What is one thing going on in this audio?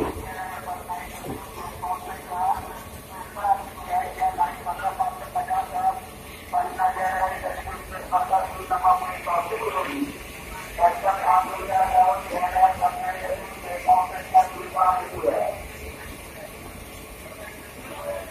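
A passenger train rolls slowly.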